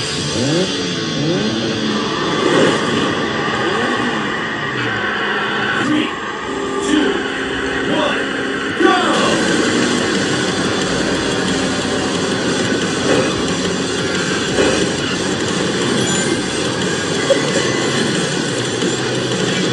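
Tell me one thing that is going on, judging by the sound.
Racing game cars whoosh and hum along.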